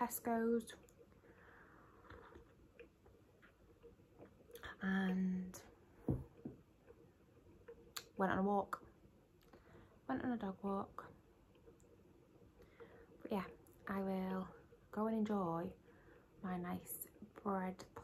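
A young woman talks casually and close by, in short bursts with pauses.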